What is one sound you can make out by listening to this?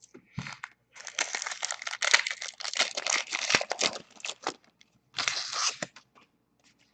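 A foil wrapper crinkles.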